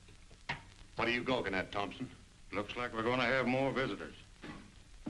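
A man speaks loudly to a group at close range.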